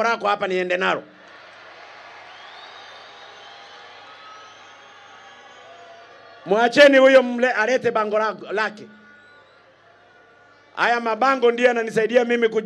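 A man speaks forcefully through a loudspeaker outdoors.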